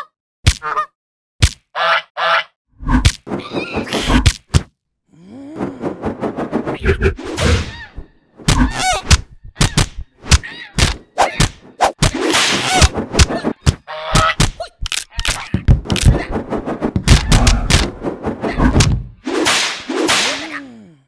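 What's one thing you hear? Geese honk loudly and harshly.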